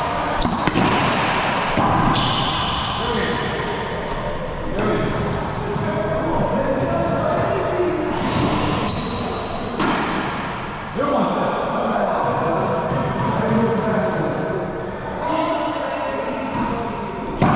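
Men talk casually in a large echoing court.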